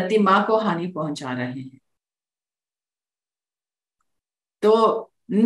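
A woman talks calmly into a microphone over an online call, pausing between phrases.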